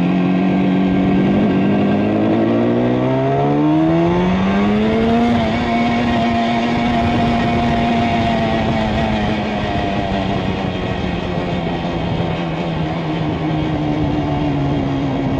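A motorcycle engine roars close by, rising in pitch as it speeds up, then holding steady and easing off.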